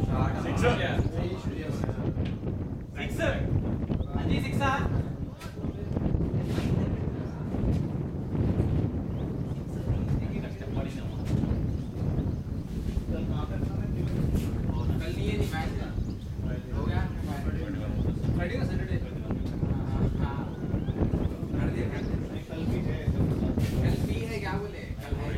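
Men call out to each other across the field.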